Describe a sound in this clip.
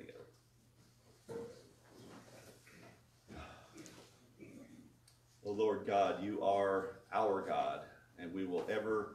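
An older man speaks calmly through a microphone in a room with slight echo.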